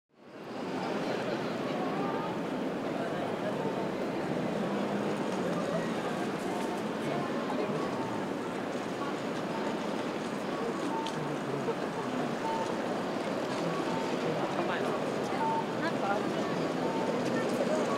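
A crowd chatters in the street.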